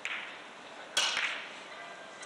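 A cue tip sharply strikes a billiard ball.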